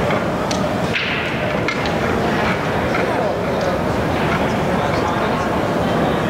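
Pool balls clack together as they are racked.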